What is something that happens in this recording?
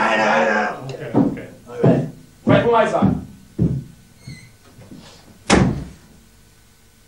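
Drums are struck hard with crashing cymbals.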